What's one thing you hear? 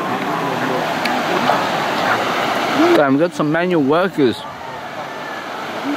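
A shallow river flows over stones.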